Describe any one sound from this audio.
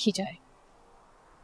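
A woman speaks sharply, close by.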